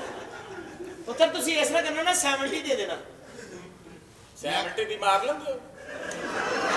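A man speaks loudly and with animation through a microphone in a large echoing hall.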